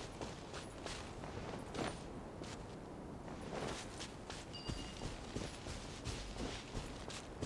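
Quick footsteps rustle through tall grass.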